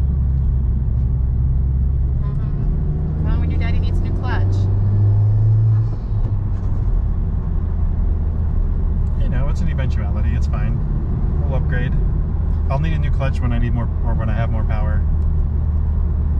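A car engine hums steadily while driving, heard from inside the car.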